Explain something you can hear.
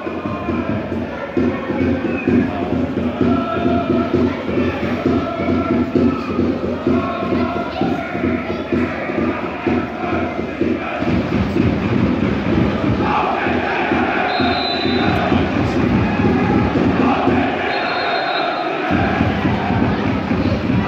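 A large crowd of fans sings and chants loudly in an open-air stadium.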